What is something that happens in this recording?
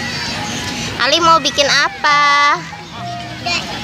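A young child talks loudly up close.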